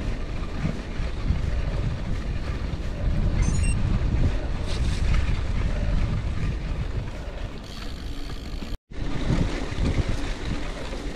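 Bicycle tyres crunch and rumble over a gravel path.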